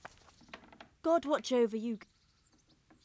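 A young woman speaks calmly and warmly.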